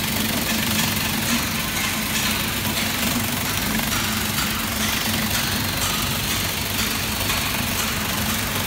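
A food cutting machine whirs steadily with a loud motor hum.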